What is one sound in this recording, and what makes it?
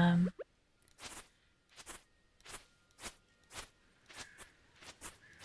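Soft game sound effects pop several times in quick succession.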